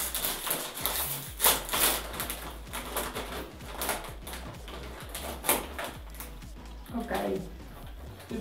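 A plastic snack bag crinkles and rustles as it is torn open.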